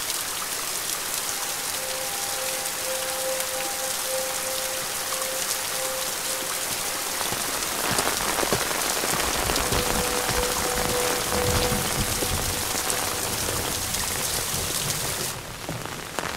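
Steady rain falls outdoors, hissing evenly.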